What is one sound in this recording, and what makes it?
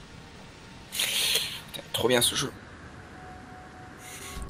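A jetpack hisses as it fires.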